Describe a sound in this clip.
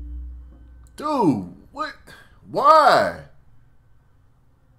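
A man exclaims with animation close to a microphone.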